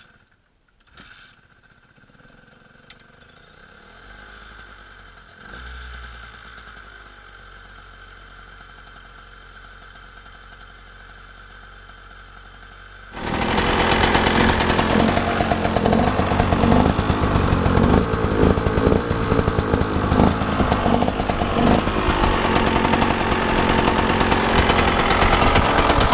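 A two-stroke dirt bike engine idles with a loud, rattling putter.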